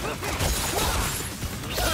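An energy blast whooshes and crackles.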